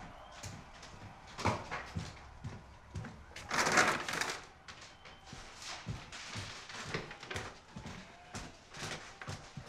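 Footsteps tap steadily on a hard floor indoors.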